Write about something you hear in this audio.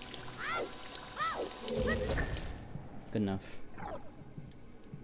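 Bright electronic chirps and chimes from a video game ring out.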